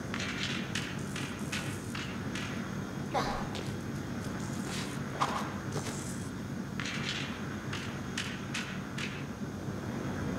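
Light footsteps tap on metal.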